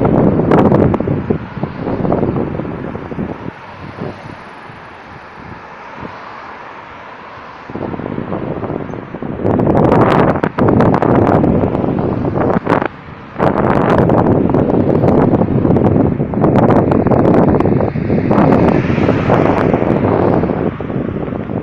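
Cars drive past nearby on a road, their tyres hissing as they come and go.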